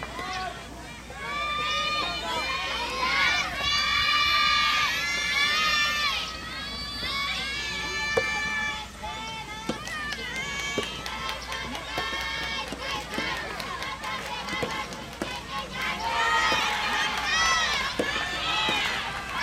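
Young women shout and cheer loudly nearby.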